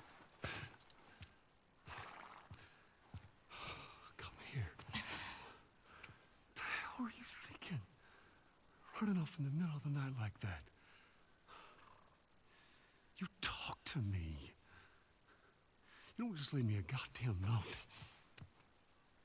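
A man speaks in a low, stern voice, close by.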